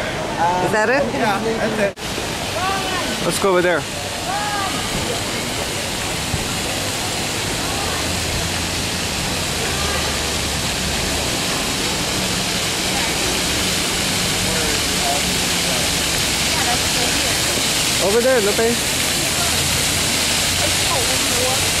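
Fountain jets splash and patter steadily outdoors.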